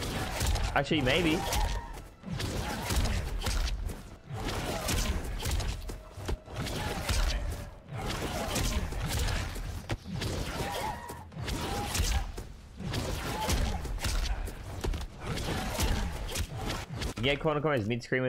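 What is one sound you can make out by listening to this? Punches and kicks thud and crack in a video game fight.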